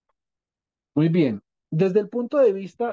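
A young man speaks through an online call.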